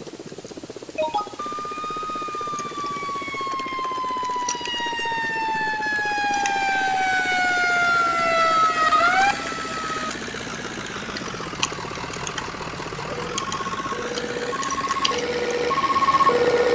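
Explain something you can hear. A fire truck siren wails loudly, falling and rising in pitch.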